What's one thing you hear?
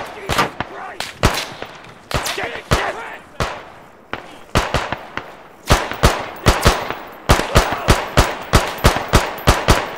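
Rifle shots crack repeatedly, echoing across open ground.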